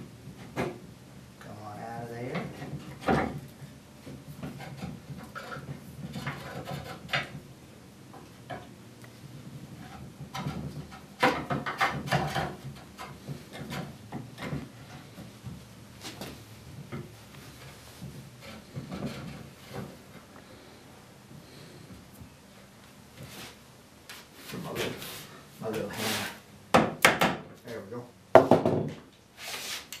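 A tool scrapes and shaves wood in short strokes.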